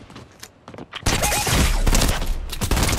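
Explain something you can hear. Gunshots fire in a rapid, loud burst.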